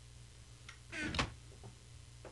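A wooden chest thumps shut.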